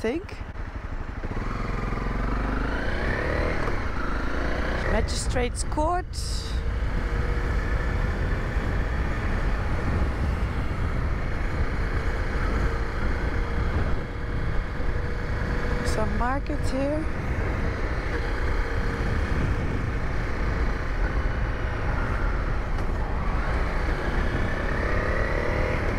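A motorcycle engine hums and revs while riding.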